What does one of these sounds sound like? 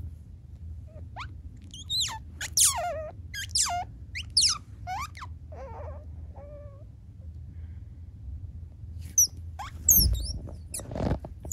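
A small baby animal squeaks in short, high, rising cries.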